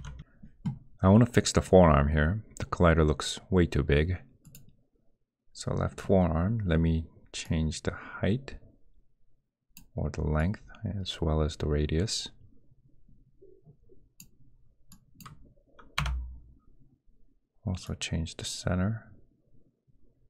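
A young man talks calmly and close into a microphone, in short bursts with pauses.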